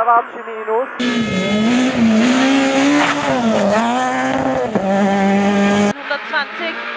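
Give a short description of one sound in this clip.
A rally car races past with a loud engine roar.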